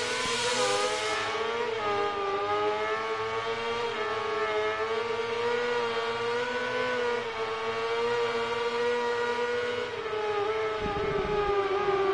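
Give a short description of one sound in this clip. A racing motorcycle engine whines loudly at high revs, rising and falling with gear changes.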